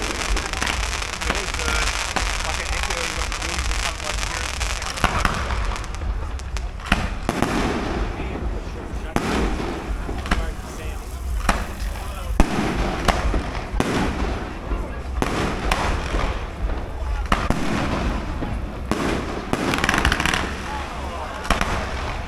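Fountain fireworks hiss and spray.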